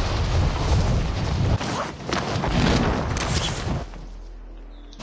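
Wind rushes loudly during a fast fall through the air.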